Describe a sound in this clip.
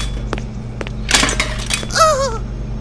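Objects clatter and tumble onto a floor.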